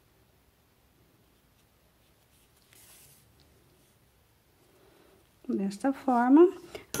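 Yarn rustles softly as a needle pulls it through crochet.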